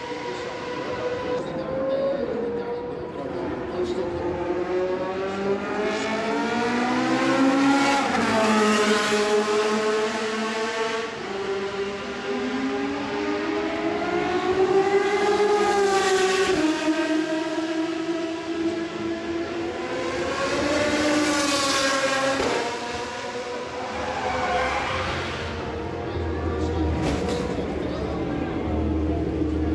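A racing car engine screams past at high revs, rising and falling in pitch as it shifts gears.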